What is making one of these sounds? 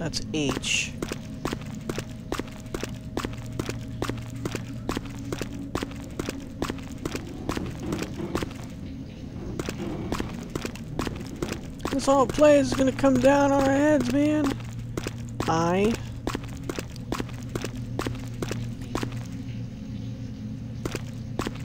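Footsteps tread steadily on a wet stone floor.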